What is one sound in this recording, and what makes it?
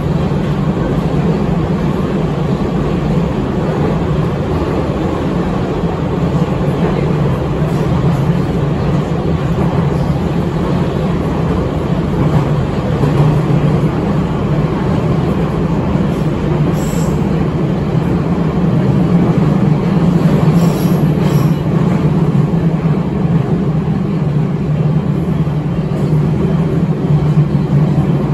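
A metro train rumbles and roars loudly as it runs through a tunnel.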